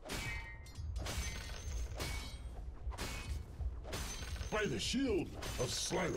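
Fantasy battle effects clash and crackle.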